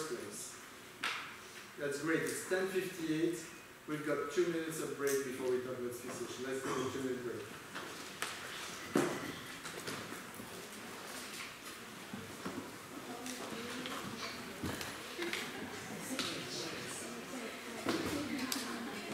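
A middle-aged man speaks calmly through a microphone in a large room with some echo.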